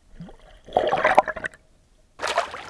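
Bubbles rush and gurgle underwater.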